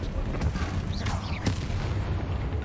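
A magic spell blasts and crackles with a sharp bang.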